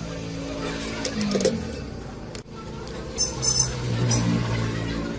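Plastic parts click and rattle as they are handled.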